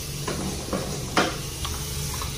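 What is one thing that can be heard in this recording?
A soap dispenser clicks as it is pumped.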